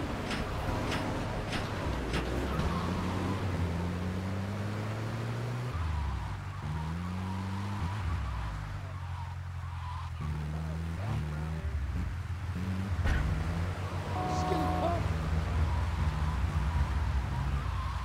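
A vehicle engine hums and revs as it drives along.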